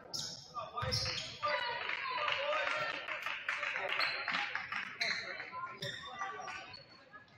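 A crowd cheers and chatters in an echoing gym.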